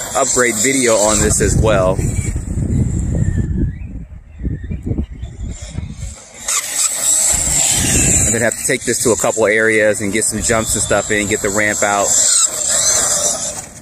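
A small electric toy car motor whines at high speed.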